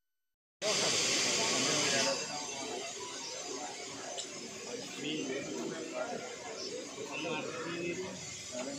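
A crowd of men murmurs and chatters outdoors.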